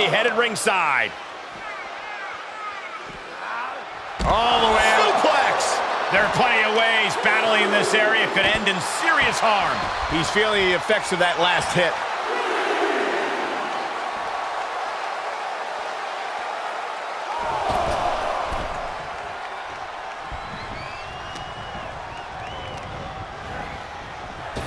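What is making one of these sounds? A large crowd cheers and roars in a big arena.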